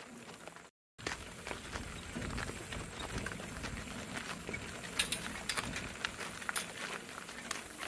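A cart's wheels crunch over gravel.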